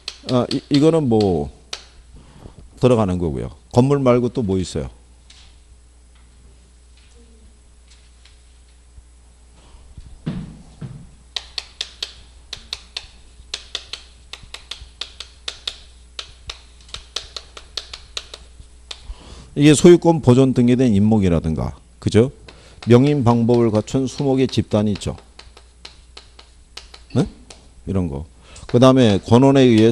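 A middle-aged man lectures with animation through a microphone.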